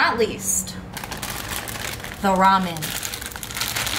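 A snack bag rustles.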